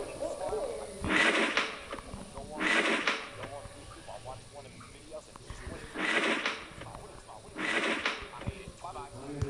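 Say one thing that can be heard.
Wooden drawers scrape open and shut.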